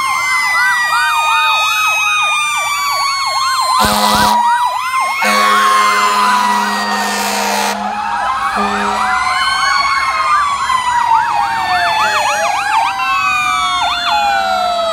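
Several sirens wail and yelp loudly, overlapping throughout.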